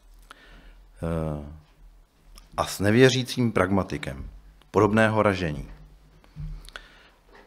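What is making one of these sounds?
A man speaks calmly into a microphone, with pauses between phrases.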